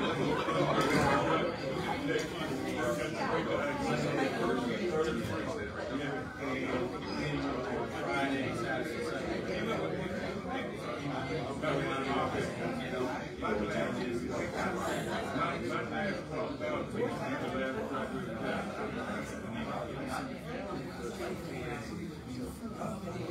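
A crowd of men and women chatter at once in a large echoing hall.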